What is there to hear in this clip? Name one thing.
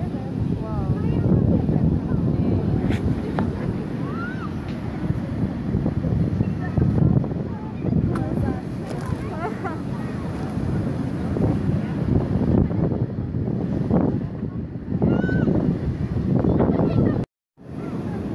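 Waves crash and wash onto a beach.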